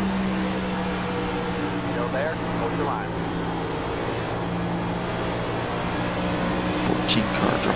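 A race car engine drones loudly at a steady high pitch.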